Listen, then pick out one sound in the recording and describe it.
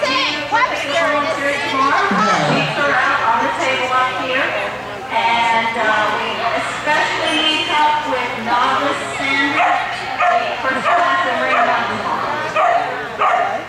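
A woman calls out encouragement to a dog with animation, in a large echoing hall.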